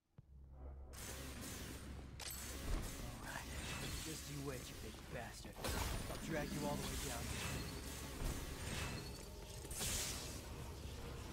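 Sword slashes and magic blasts crash in a video game fight.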